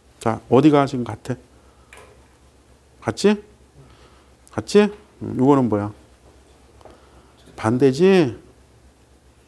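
A middle-aged man speaks with animation into a clip-on microphone, in short bursts with pauses.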